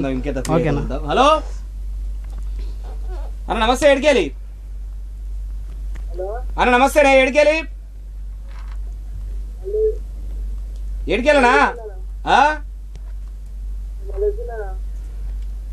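A second young man answers and laughs, close by.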